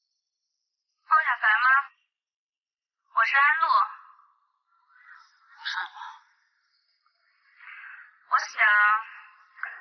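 A young woman speaks quietly and calmly, close by.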